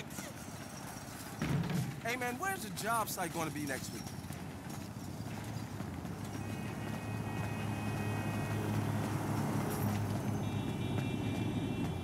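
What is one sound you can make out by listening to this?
Footsteps hurry along a pavement.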